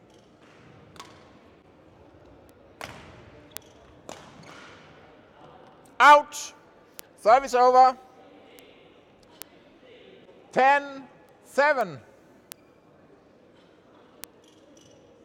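A badminton racket strikes a shuttlecock with sharp pops.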